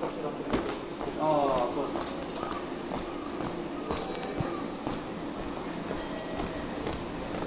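A low steady hum of a large indoor hall carries throughout.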